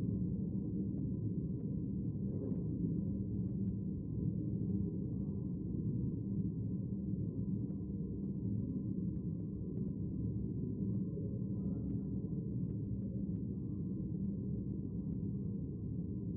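Footsteps tap softly across a carpeted floor.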